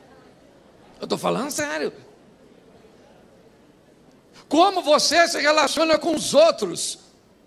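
A middle-aged man speaks with animation into a microphone in a slightly echoing room.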